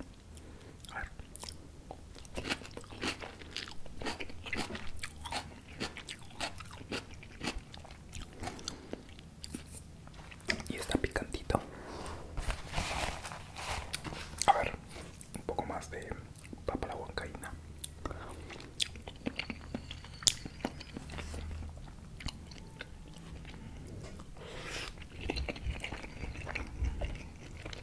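A young man chews and slurps food close to a microphone.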